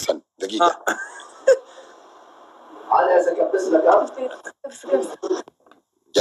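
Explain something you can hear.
A young man talks with animation, heard through a phone speaker.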